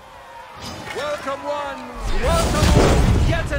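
A man announces loudly.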